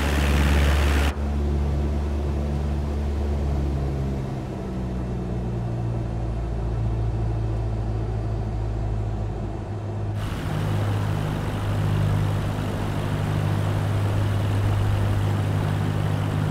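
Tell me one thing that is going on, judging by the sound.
Wind rushes past an aircraft.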